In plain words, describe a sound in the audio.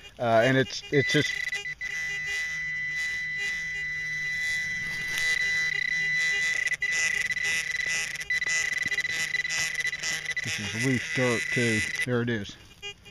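A metal detector probe gives off a steady high-pitched tone.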